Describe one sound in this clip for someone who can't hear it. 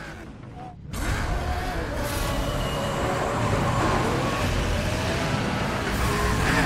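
A car engine roars as a car races along a road.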